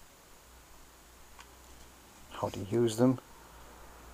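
A paper page of a book turns.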